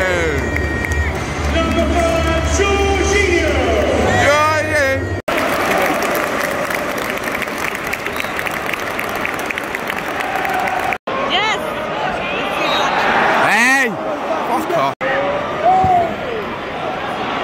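A large stadium crowd murmurs and cheers in the open air.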